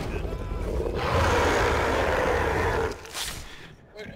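A monster roars close by.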